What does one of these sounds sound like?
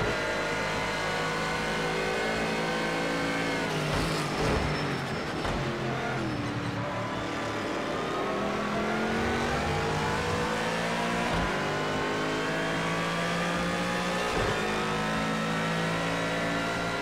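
A race car engine roars, revving up and dropping with each gear change.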